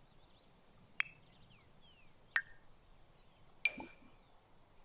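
Game menu clicks sound sharply a few times.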